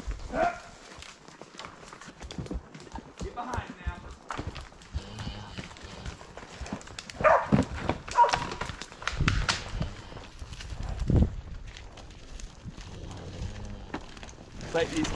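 A horse's hooves crunch over dry twigs and brush.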